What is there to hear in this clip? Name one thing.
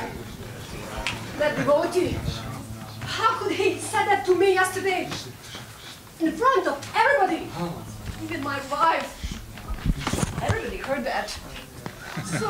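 A woman speaks.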